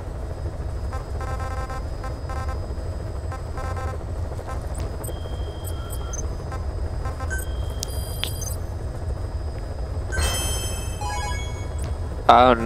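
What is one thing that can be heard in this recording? Soft electronic menu beeps and chimes sound as options are selected.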